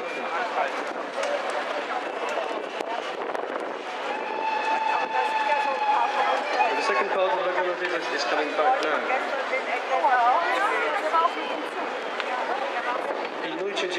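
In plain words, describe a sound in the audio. A large crowd chatters loudly outdoors.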